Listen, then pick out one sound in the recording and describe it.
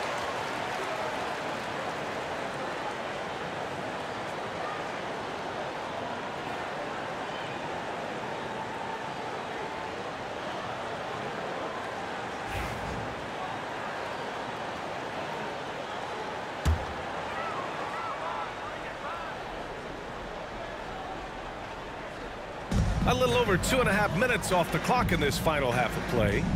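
A large crowd murmurs steadily in an echoing arena.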